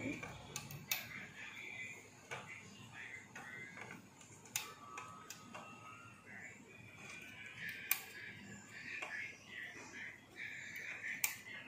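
Rubber bands click and snap against a plastic loom.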